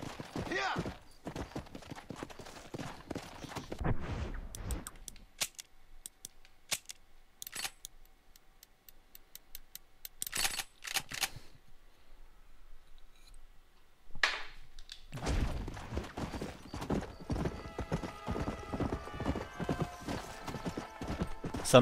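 A horse's hooves pound as it gallops over dry ground.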